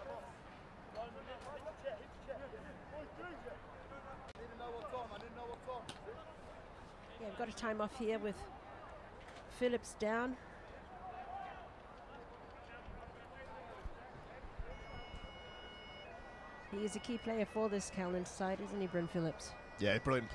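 A crowd murmurs faintly outdoors.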